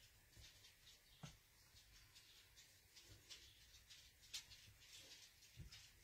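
A small paintbrush softly brushes across paper.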